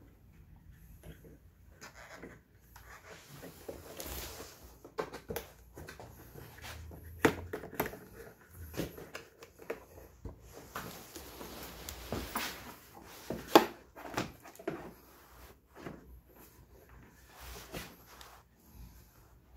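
Plastic scooter panels knock and clatter as they are fitted together.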